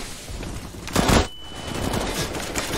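Rifle shots fire in a short burst.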